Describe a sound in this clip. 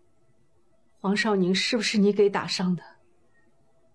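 A woman speaks sharply and questioningly, close by.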